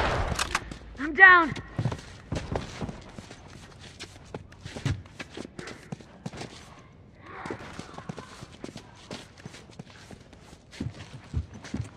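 Heavy blows and thuds land in a close scuffle.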